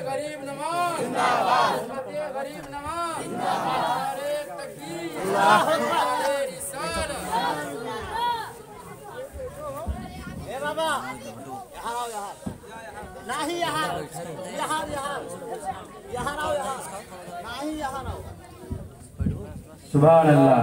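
A man chants melodiously through a microphone and loudspeaker.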